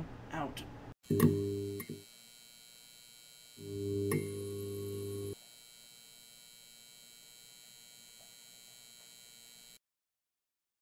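A neon sign buzzes and hums steadily.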